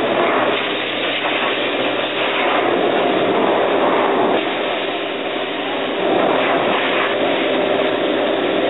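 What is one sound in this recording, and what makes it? A pet dryer blows air with a loud, steady roar.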